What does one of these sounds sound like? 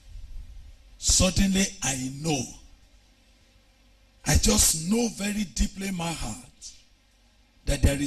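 A man preaches with animation into a microphone, in bursts with pauses.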